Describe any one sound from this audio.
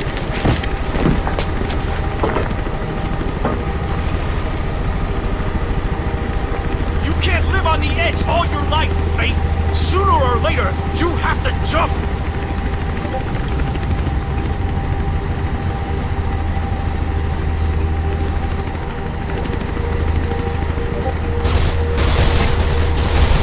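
A helicopter engine drones with a low, steady thudding of rotor blades.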